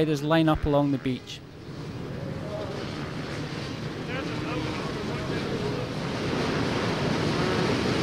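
Many motorcycle engines idle and rev together outdoors, growing louder.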